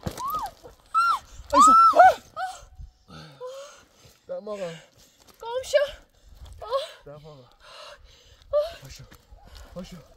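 A young woman wails and cries out in distress close by.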